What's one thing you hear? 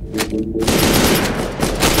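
An assault rifle fires in a video game.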